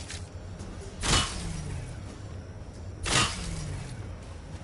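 A rifle fires two loud, booming shots that echo away.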